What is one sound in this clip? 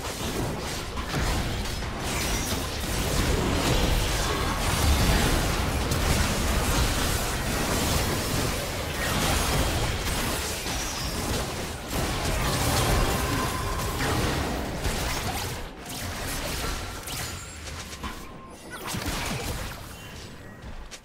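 Spell effects crackle and boom in a fast fight.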